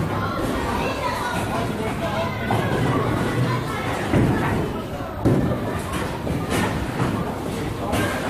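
Men and women chatter nearby in a large echoing hall.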